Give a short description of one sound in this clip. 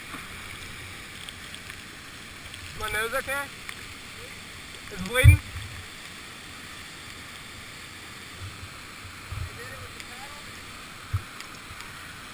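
A waterfall rushes steadily over rock.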